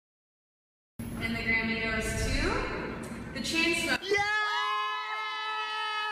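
A woman sings through loudspeakers in a large echoing hall.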